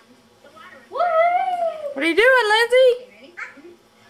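A young child squeals and shrieks with delight.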